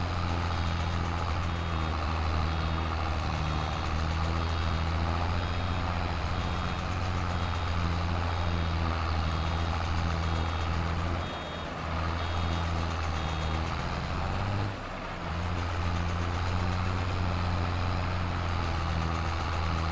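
A tractor engine rumbles steadily at low speed.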